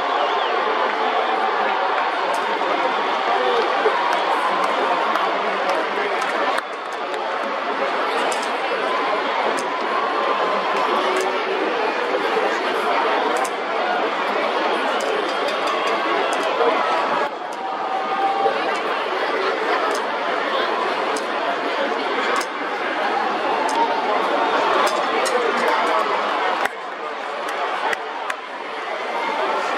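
A large stadium crowd murmurs and chatters steadily.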